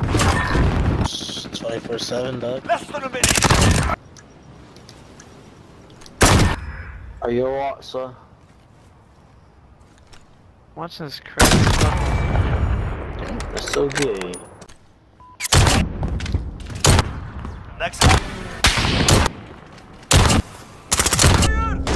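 Gunshots fire in sharp, loud bursts.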